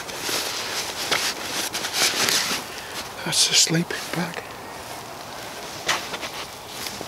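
A fabric stuff sack rustles as it is handled.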